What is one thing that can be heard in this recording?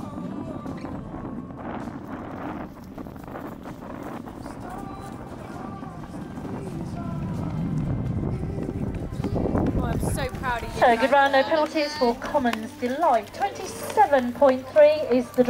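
A horse trots on soft grass.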